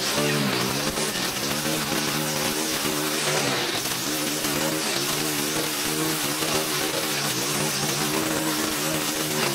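A string trimmer engine whines steadily close by, its pitch wavering as it cuts.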